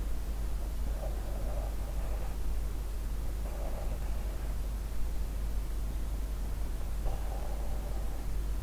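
A man speaks quietly and close by.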